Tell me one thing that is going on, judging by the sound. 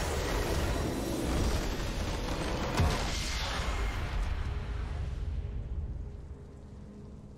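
Triumphant game music swells, then fades away.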